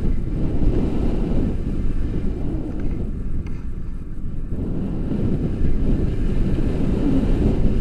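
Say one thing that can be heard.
Wind rushes and buffets loudly against a microphone, heard outdoors in flight.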